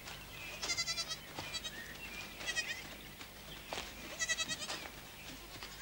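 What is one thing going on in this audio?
Goats bleat repeatedly outdoors.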